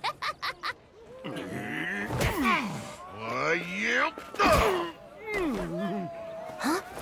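Men shout and grunt as they scuffle.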